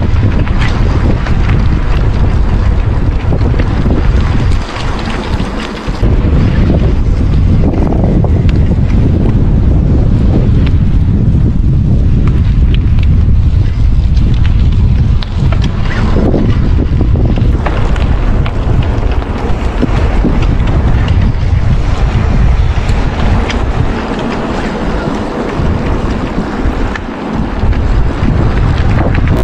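Wind rumbles loudly across an outdoor microphone.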